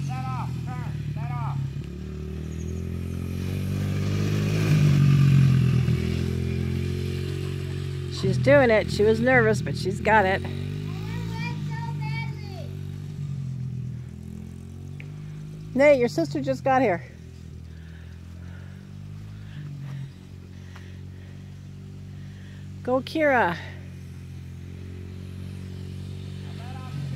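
A small dirt bike engine hums, growing louder as it passes close.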